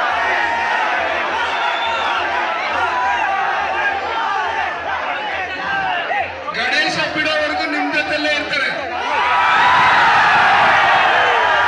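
A man speaks into a microphone through loudspeakers.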